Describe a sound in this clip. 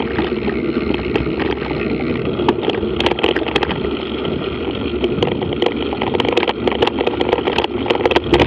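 Tyres roll and crunch over a dirt track.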